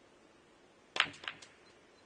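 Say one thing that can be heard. A cue strikes the white ball with a sharp click.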